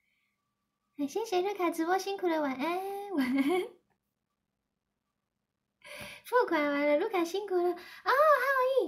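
A young woman speaks brightly and with animation, close to the microphone.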